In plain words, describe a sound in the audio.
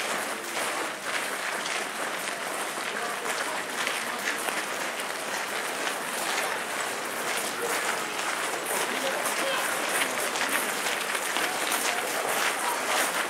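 Many footsteps crunch steadily on gravel outdoors.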